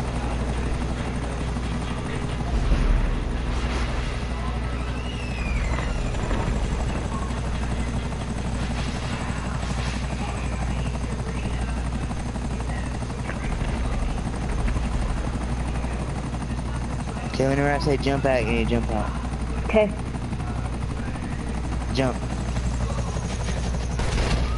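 A helicopter's rotor drones steadily overhead.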